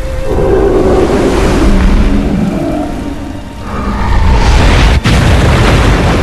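A storm wind roars and howls.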